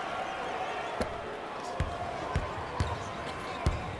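A basketball bounces on the court in quick thuds.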